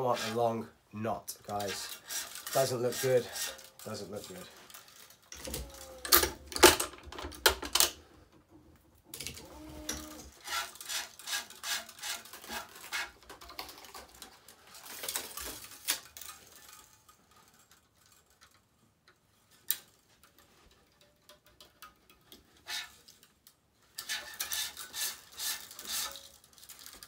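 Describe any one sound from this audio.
Taut strings rattle and scrape as hands thread and adjust them.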